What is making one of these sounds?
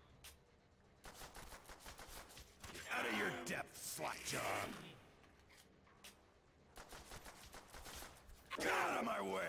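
A pistol fires a rapid string of shots.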